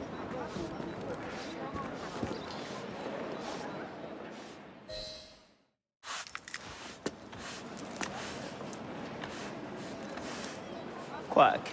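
A broom sweeps across cobblestones.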